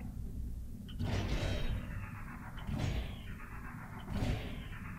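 An electric tool zaps in repeated whooshing bursts.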